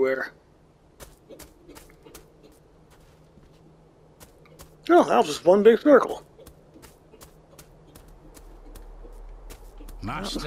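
Footsteps run quickly over a gravel path.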